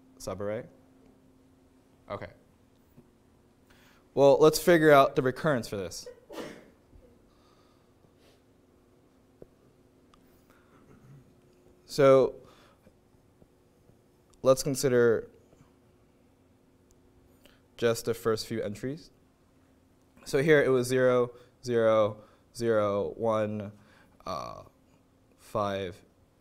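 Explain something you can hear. A young man speaks calmly into a microphone, in pauses.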